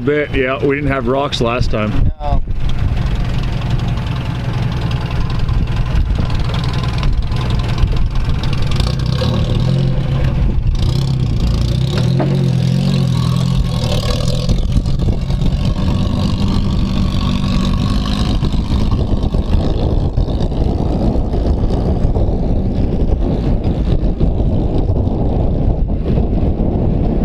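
A truck engine rumbles and strains as the truck crawls slowly uphill.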